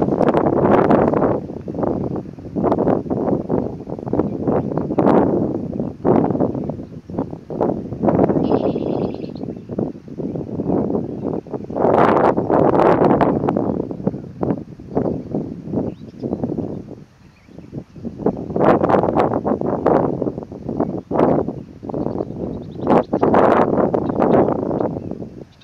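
Wind blows in strong, uneven gusts outdoors.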